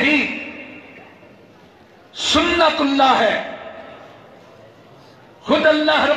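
A man speaks forcefully into a microphone, heard through loudspeakers with echo.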